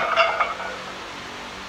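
A man grunts loudly with effort, close by.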